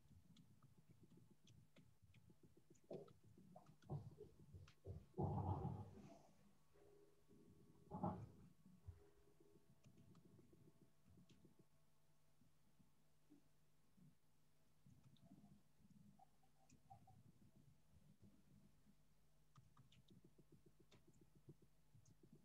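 Keys click as someone types on a keyboard.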